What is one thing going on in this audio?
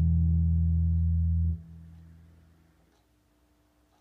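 An electric bass guitar plays a deep sustained note that is cut off and fades away.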